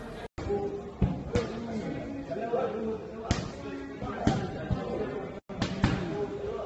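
Kicks and punches thud against a heavy punching bag.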